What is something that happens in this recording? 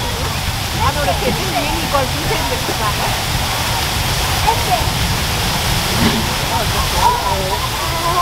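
A waterfall splashes and rushes steadily.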